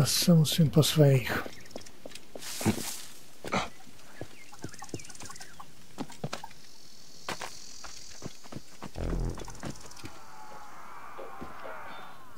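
Footsteps run quickly over sandy ground.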